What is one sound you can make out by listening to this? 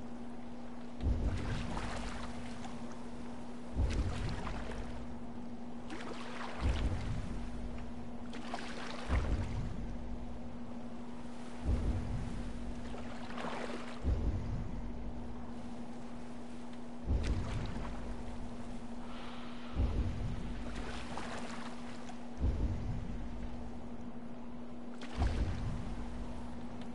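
Water splashes rhythmically as a pole pushes a small boat along.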